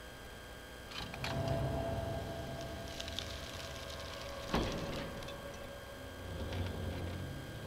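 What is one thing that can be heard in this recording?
A heavy mechanical clunk rings out, followed by a low rumbling hum.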